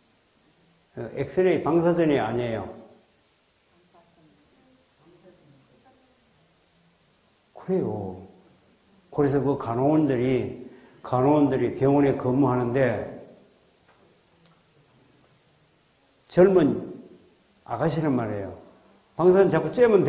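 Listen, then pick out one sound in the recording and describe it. A middle-aged man speaks calmly into a microphone over a loudspeaker, with pauses.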